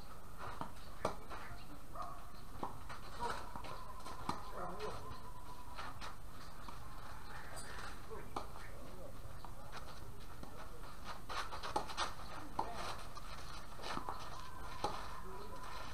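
Tennis balls are struck with rackets in a steady rally.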